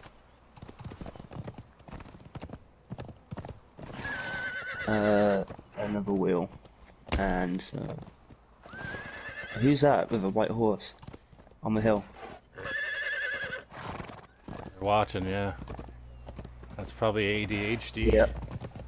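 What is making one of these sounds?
Horse hooves thud on sandy ground at a gallop.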